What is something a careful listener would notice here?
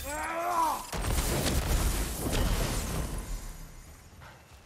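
A loud fiery explosion booms and rumbles.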